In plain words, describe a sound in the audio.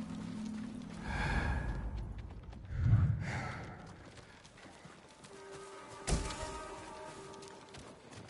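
Soft footsteps creak on wooden planks.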